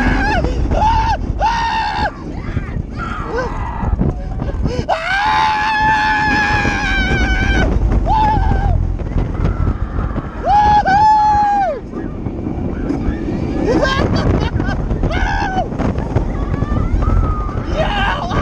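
Young riders scream and shriek nearby.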